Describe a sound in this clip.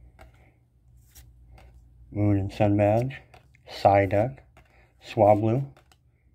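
Playing cards rustle softly as they are flipped over in the hands.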